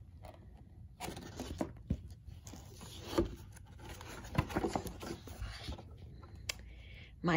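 A book's paper page rustles as it turns.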